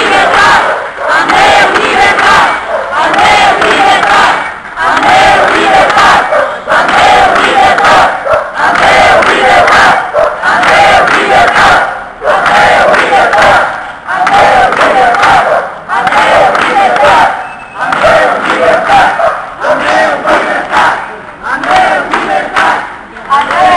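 A crowd of men and women chants loudly in rhythm outdoors.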